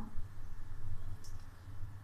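Spices pour softly from a plate into a bowl.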